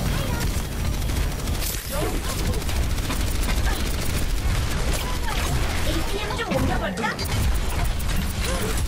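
Rapid blaster fire crackles in quick bursts.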